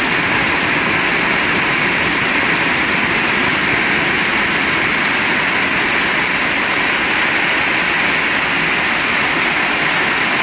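Rainwater streams off a roof edge and splashes onto the ground.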